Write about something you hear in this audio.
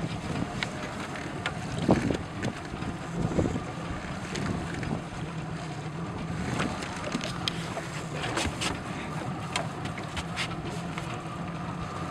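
Waves slap against a boat's hull.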